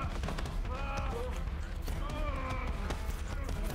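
A man groans in pain close by.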